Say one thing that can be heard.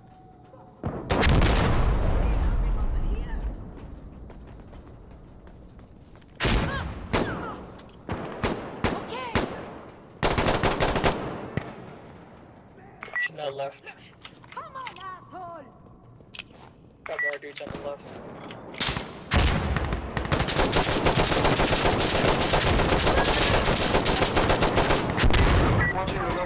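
A rifle fires loud, rapid bursts of shots that echo.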